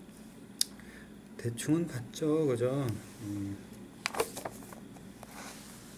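A book's pages rustle as they are turned.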